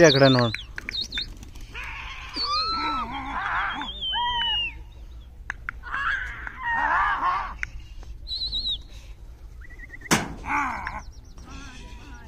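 Birds chirp and call overhead.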